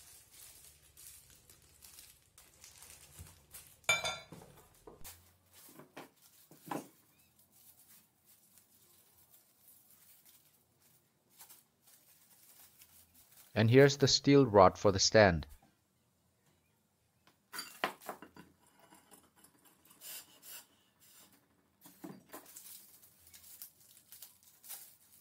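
Plastic wrapping crinkles and rustles in hands close by.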